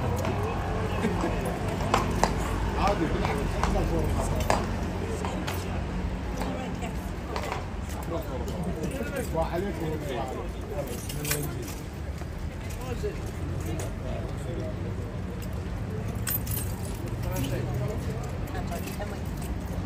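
A group of adults chat and laugh nearby outdoors.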